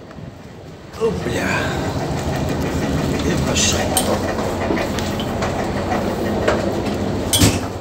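Footsteps tread on stairs.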